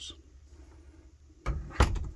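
A cabinet door clicks and rattles as it opens.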